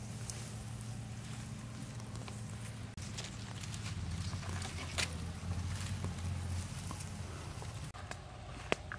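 Dry grass rustles as a crocodile crawls through it.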